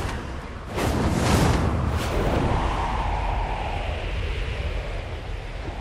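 Large wings flap and whoosh through the air.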